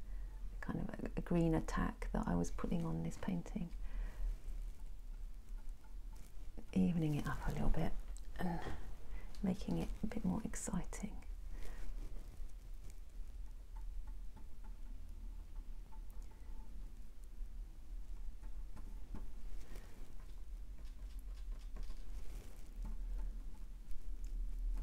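A paintbrush brushes softly against canvas.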